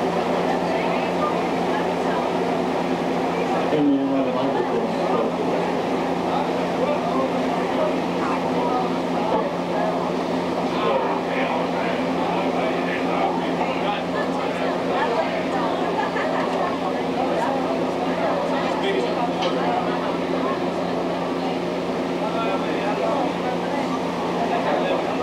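A crowd of men and women chatters loudly in a busy room.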